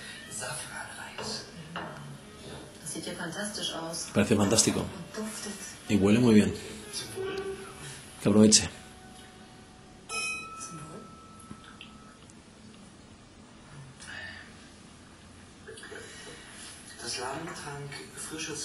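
A man talks calmly, heard through a television speaker.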